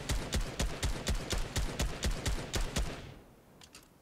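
Rapid gunshots fire in quick succession.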